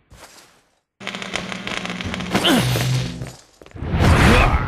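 Lasers hum and whoosh with a loud electric buzz.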